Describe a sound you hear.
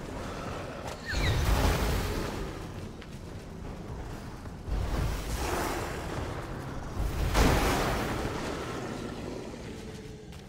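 Weapons swing and strike with loud whooshing thuds.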